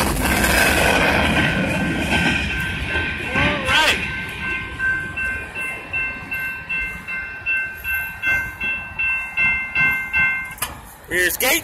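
A railway crossing bell rings in rapid, steady strokes.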